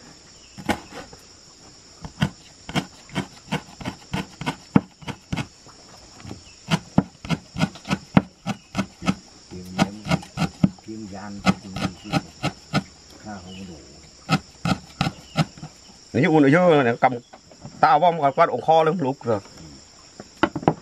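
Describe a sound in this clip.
A knife chops herbs on a wooden board with quick, sharp knocks.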